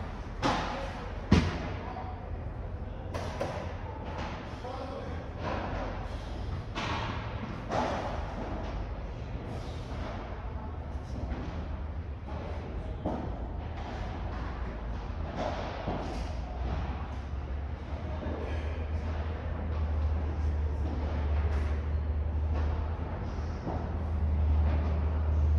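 A ball bounces on the court and off glass walls.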